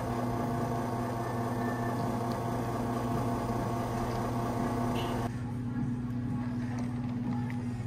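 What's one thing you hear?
Coffee pours into a cup of ice.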